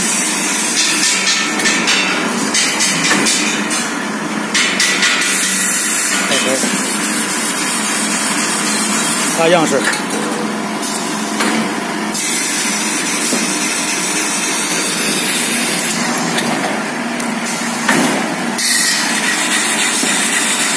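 A machine hums and whirs steadily close by.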